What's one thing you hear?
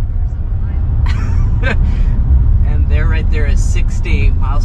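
A young man talks close to a microphone inside a car.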